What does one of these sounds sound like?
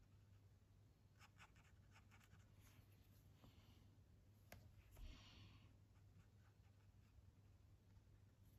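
A marker tip squeaks and scratches softly across paper.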